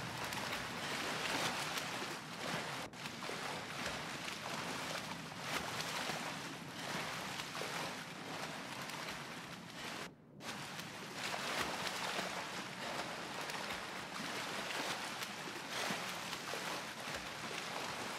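Water splashes steadily as someone swims.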